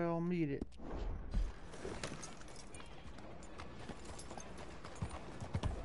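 A horse's hooves clop on a dirt street.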